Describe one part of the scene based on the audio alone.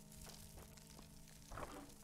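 Armoured footsteps scuff on a stone floor.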